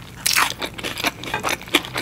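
A spring roll squelches as it is dipped into thick sauce.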